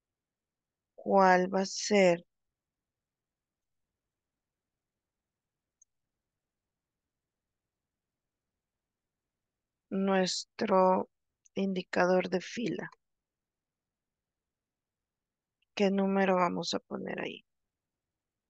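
A young woman speaks calmly over an online call, in short bursts.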